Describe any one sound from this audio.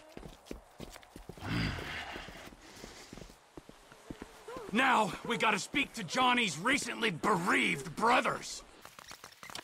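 A man's footsteps crunch on gravel.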